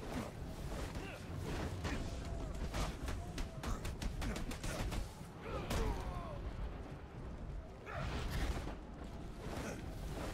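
A man grunts and groans as he is struck.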